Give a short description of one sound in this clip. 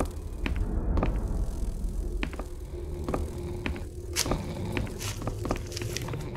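Footsteps thud slowly and evenly on creaking wooden boards.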